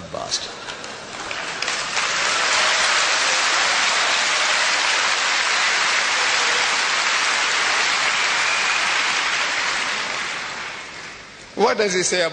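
A large crowd applauds loudly.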